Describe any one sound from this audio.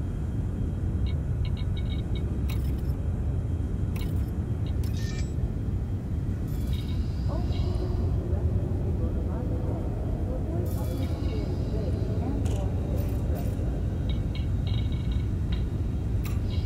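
Short electronic beeps and clicks sound as menus open and change.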